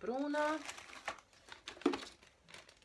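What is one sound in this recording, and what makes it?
Packaging rustles in a woman's hands.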